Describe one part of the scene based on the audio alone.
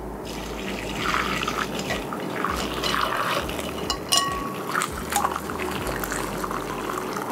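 Liquid pours and splashes into a bowl.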